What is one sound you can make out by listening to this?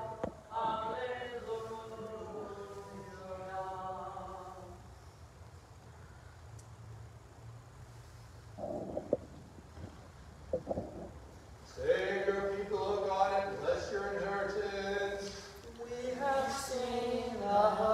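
A man chants a prayer in a steady sung tone, echoing in a large hall.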